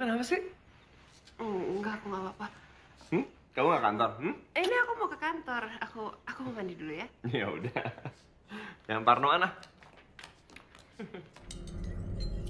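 A young man talks and laughs softly close by.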